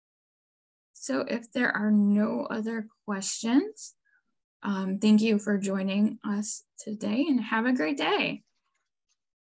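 A young woman speaks calmly, close to the microphone, as if on an online call.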